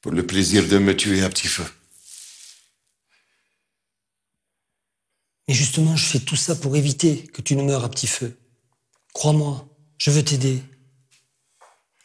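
A middle-aged man speaks calmly and clearly.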